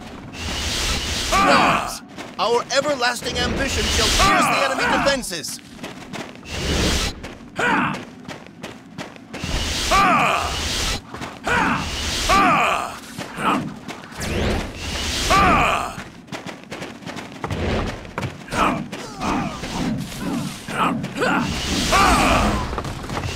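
Blades whoosh and clash in a busy fight.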